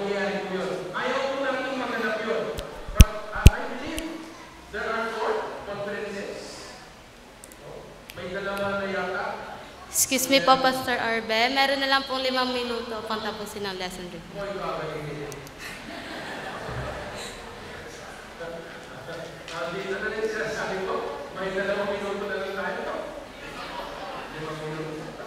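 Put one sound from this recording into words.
An older man speaks with animation through a microphone in a large echoing hall.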